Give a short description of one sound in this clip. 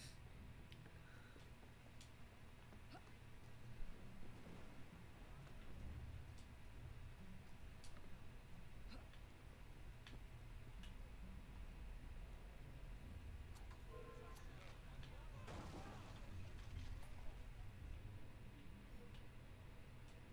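A young man talks calmly into a microphone, close by.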